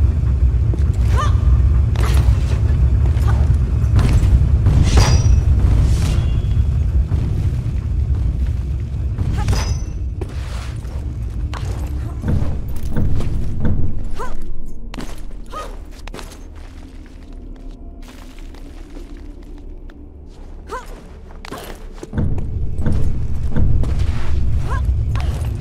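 Feet land with dull thuds on stone, again and again.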